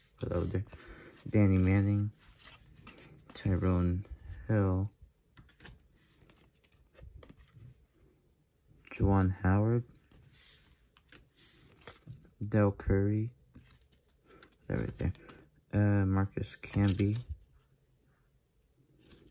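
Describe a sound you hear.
Trading cards softly rustle and slide as hands flip through them.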